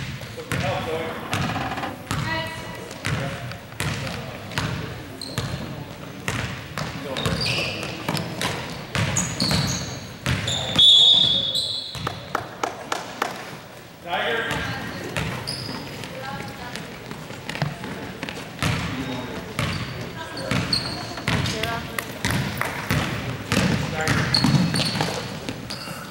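A basketball bounces on a hard court in a large echoing gym.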